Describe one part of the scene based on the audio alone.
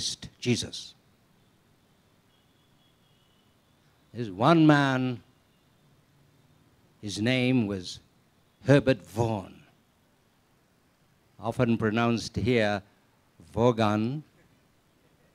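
An elderly man speaks slowly and calmly through a microphone and loudspeakers, with pauses between phrases.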